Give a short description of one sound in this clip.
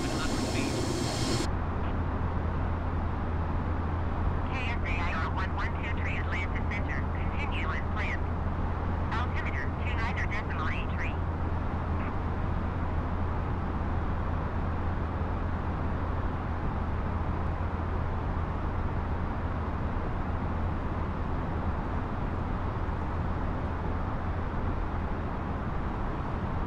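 Jet engines hum with a steady low roar.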